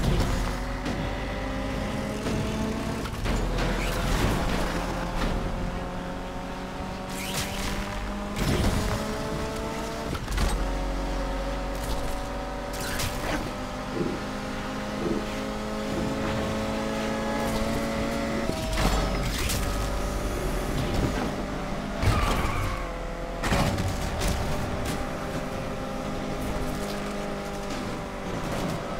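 A racing car engine roars steadily, its pitch shifting as the car speeds up and changes gear.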